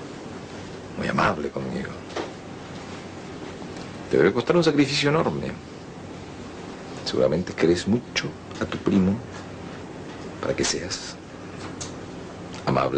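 A man speaks softly and close by.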